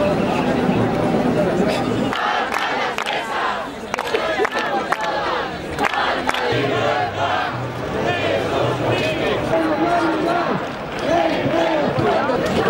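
A large crowd of men and women chants and shouts outdoors.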